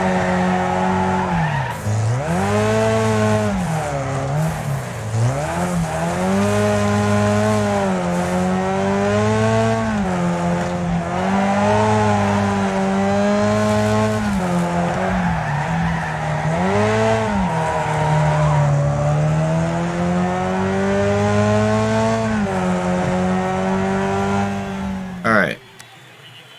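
A car engine roars, revving up and down.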